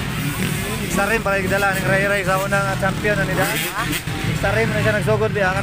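A motorcycle engine revs hard up and down close by.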